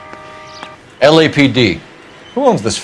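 A man asks a question firmly.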